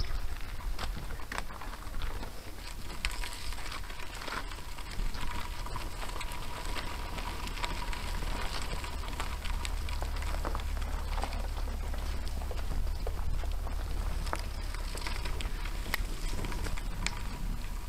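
A bicycle frame clicks and clanks over bumps.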